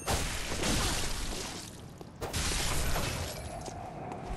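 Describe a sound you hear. A sword swings and clashes with heavy impacts.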